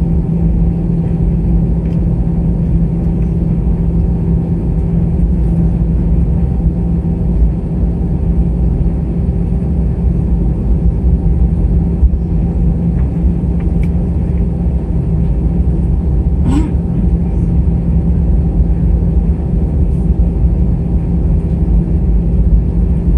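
Aircraft wheels rumble over a runway.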